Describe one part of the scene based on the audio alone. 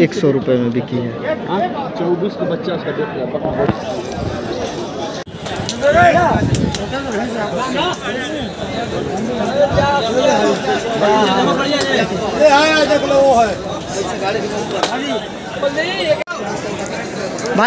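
A crowd murmurs outdoors all around.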